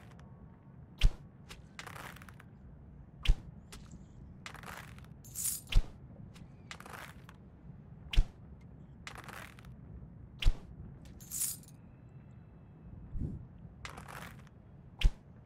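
A bowstring snaps as arrows are loosed, each with a sharp thud.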